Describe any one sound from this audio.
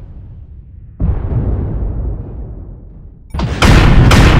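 A wrecked war machine burns with a deep, rumbling roar.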